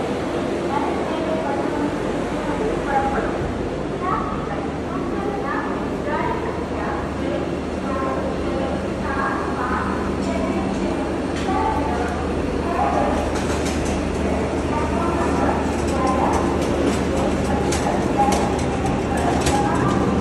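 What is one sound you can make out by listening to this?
A crowd of people chatter in the background, echoing under a platform roof.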